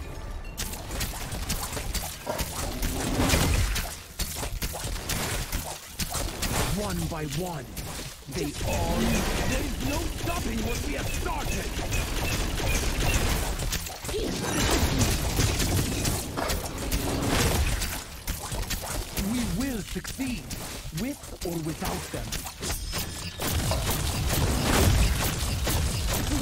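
Magic spells blast, whoosh and crackle in a fast video game battle.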